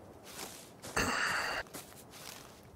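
Leafy plant stalks rustle as they are pulled.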